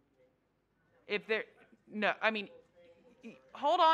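A man speaks loudly and clearly through a microphone.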